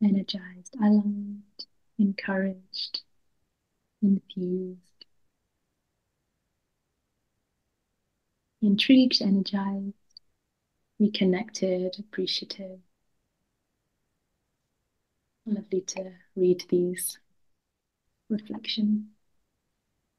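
A young woman speaks cheerfully over an online call, pausing between phrases.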